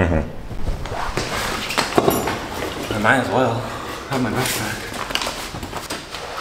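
A bag's straps and buckles rustle and clatter.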